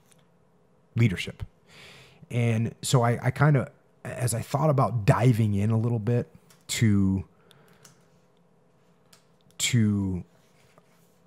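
A man speaks calmly and deliberately into a close microphone.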